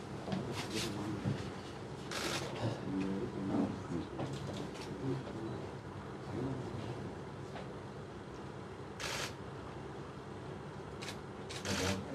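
Several men and women murmur and talk at once nearby.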